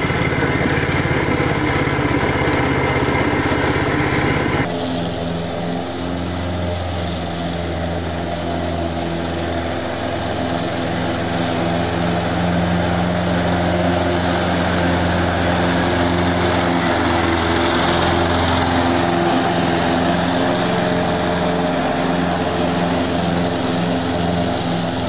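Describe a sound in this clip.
A riding mower's engine drones steadily close by.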